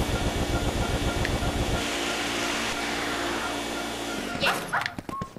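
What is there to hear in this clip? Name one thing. A vacuum cleaner whirs steadily.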